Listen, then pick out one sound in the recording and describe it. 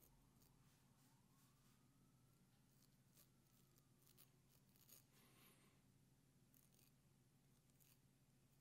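A razor blade scrapes softly over stubble on skin.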